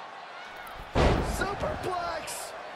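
A body slams heavily onto a wrestling mat.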